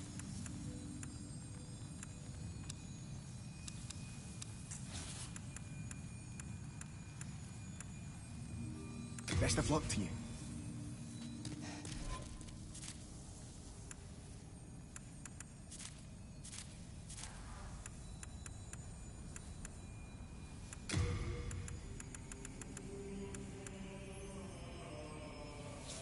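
Soft menu clicks tick now and then as selections change.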